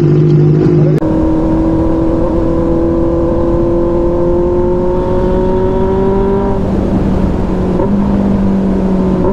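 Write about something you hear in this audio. A motorcycle engine hums steadily as it speeds along, its pitch slowly rising.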